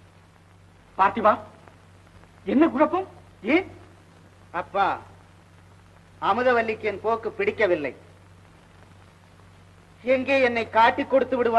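A man talks in a raised voice.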